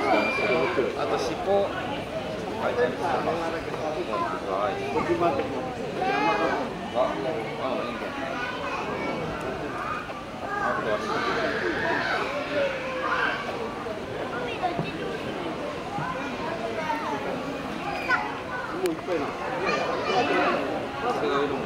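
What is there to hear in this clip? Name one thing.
Monkeys squeak and chatter close by.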